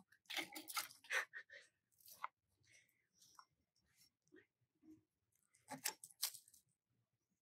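Loppers snip through woody stems.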